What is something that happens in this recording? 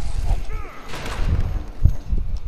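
An explosion booms and debris scatters.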